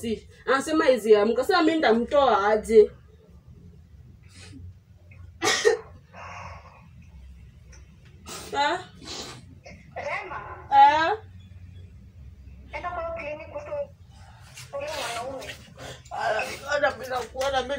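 A young woman speaks with emotion nearby.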